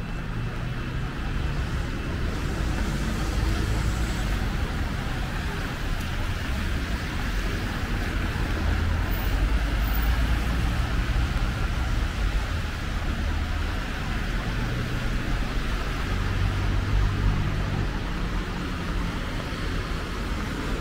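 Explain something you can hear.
Tyres hiss on a wet road as traffic passes.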